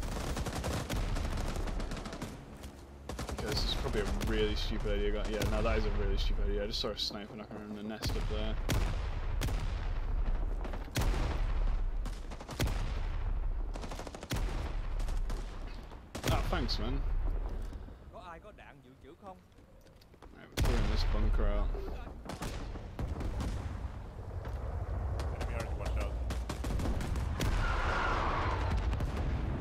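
Gunshots crack and boom nearby, again and again.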